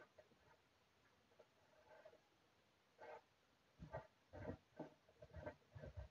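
A pen scratches softly on paper.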